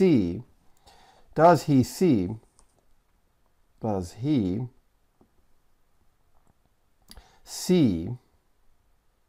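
A man speaks calmly and slowly into a microphone, in short phrases with pauses.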